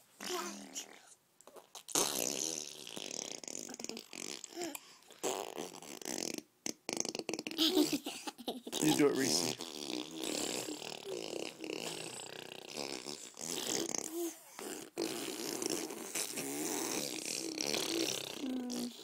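A toddler babbles and coos close by.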